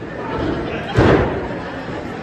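A body slams down hard onto a wrestling ring mat.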